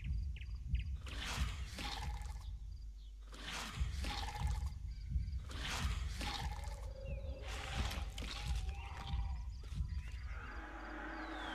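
Small animals rustle through tall grass.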